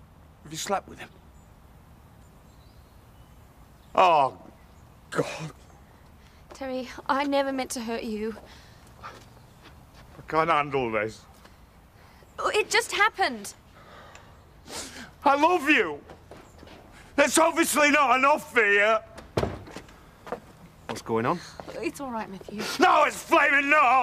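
A man speaks angrily and loudly, close by.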